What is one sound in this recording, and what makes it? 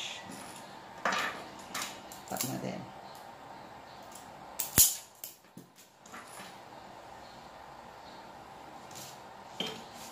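Wire strippers snip and click on electrical wire.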